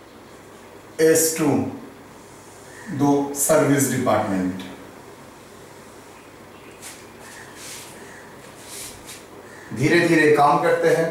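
A man speaks calmly, as if teaching.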